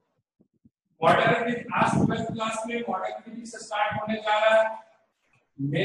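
A young man speaks calmly and clearly, close by.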